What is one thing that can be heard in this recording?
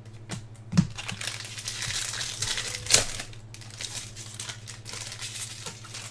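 A plastic wrapper crinkles and rustles as it is torn open.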